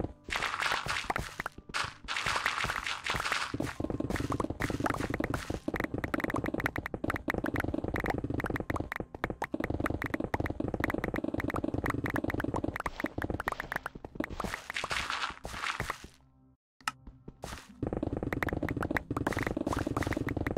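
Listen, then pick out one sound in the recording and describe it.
Dirt and stone blocks crunch and break in quick, steady succession.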